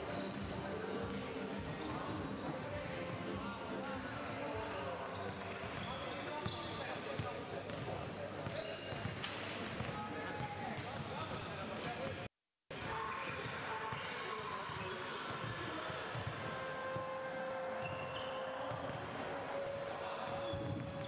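Basketballs bounce on a hard floor in a large echoing hall.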